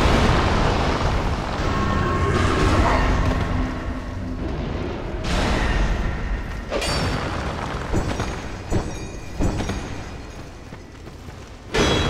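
A sword clashes and slashes in a fight.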